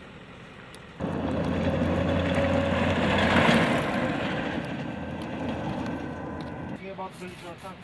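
Gravel crunches under rolling tyres.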